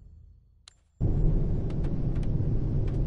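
A helicopter cabin rumbles loudly and steadily.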